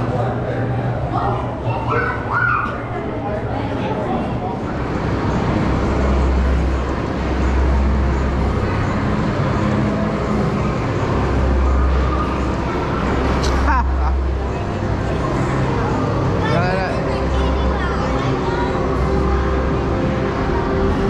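Arcade machines jingle and chime all around.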